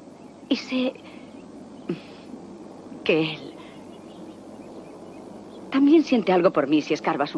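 A woman speaks quietly and hesitantly, close by.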